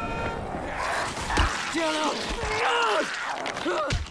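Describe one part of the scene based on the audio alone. A zombie snarls and growls up close.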